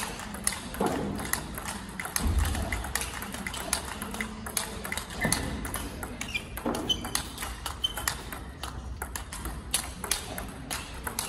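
Ping-pong balls click rapidly back and forth off paddles and tables.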